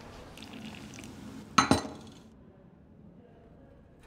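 Coffee pours from a pot into a cup.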